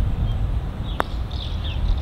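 A golf ball is struck with a sharp tap of a putter.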